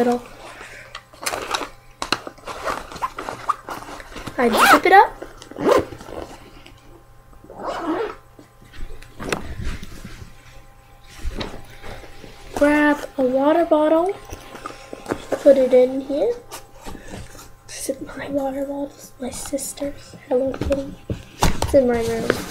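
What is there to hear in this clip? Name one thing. A girl talks with animation close to a microphone.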